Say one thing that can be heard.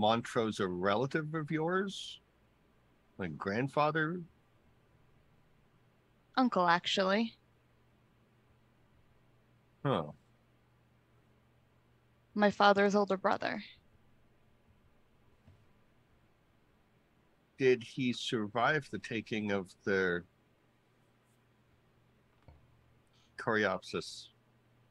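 A man talks over an online call in short bursts, with pauses between.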